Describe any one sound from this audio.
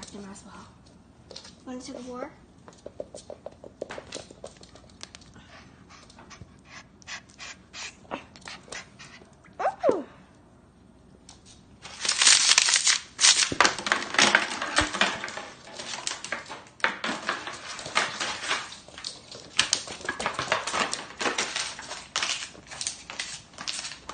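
A dog's claws click and scrabble on a hard floor.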